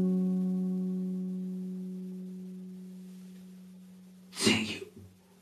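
An acoustic guitar chord rings out and slowly fades.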